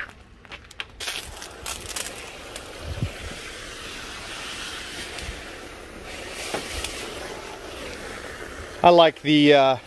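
A hose nozzle sprays a jet of water with a steady hiss.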